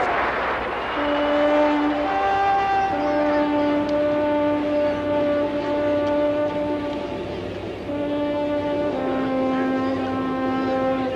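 A bugle plays long held notes up close.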